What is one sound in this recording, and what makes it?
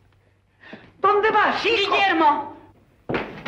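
A woman speaks up sharply.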